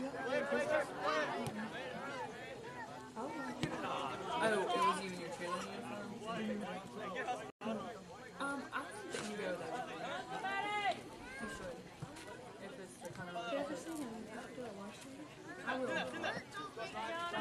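Young men shout and call out across an open field outdoors.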